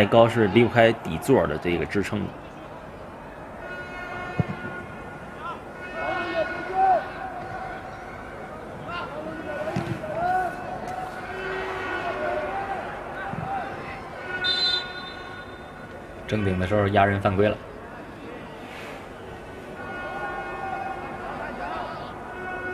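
A crowd murmurs faintly throughout a large open stadium.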